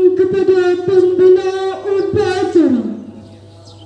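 A woman speaks through a loudspeaker outdoors.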